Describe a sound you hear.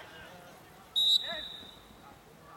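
A referee's whistle blows once sharply.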